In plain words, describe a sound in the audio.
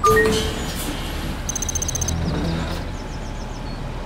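A bus door opens with a hiss.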